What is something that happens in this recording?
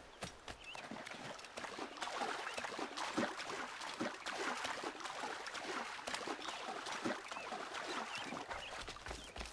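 Water splashes as someone wades through a stream.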